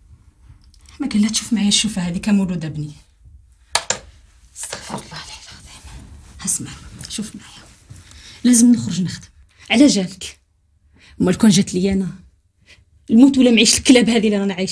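A woman speaks softly and tenderly up close.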